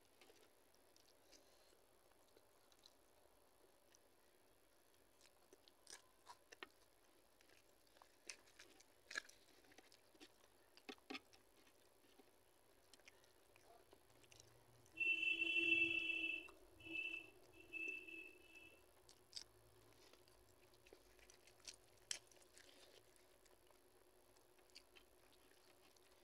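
Fingers squish rice mixed with lentil curry.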